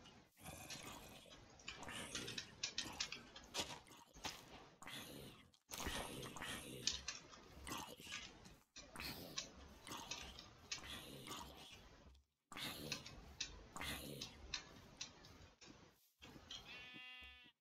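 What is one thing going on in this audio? A zombie groans and grunts when hit in a video game.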